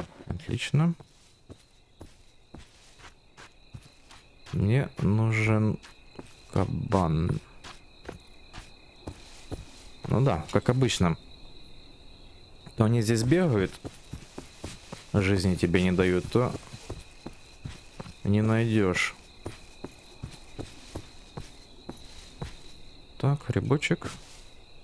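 Footsteps rustle through grass at a steady walking pace.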